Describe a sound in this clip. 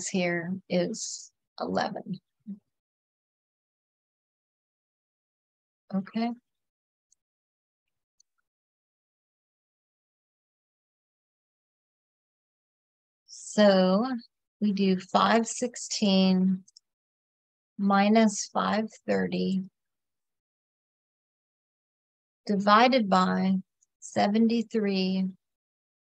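A woman speaks calmly into a close microphone, explaining in short bursts with pauses.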